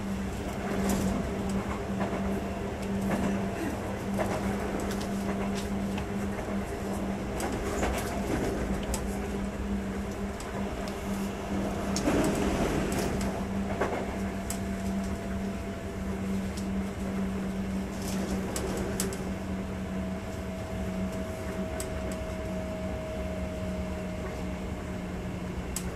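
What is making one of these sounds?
An electric train hums steadily as it runs.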